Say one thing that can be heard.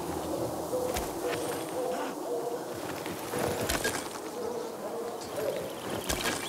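Bees buzz around a wooden hive.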